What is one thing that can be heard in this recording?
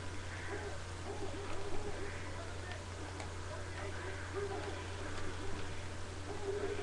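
Video game music plays steadily through a small speaker.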